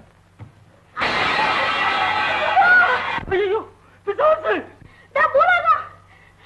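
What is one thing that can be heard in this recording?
A man wails loudly, sobbing.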